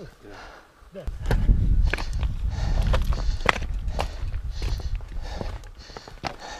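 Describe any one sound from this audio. Footsteps crunch on loose rocks.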